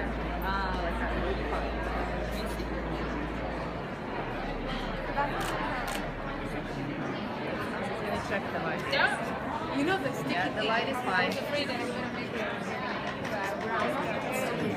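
A crowd of people chatters throughout a large echoing room.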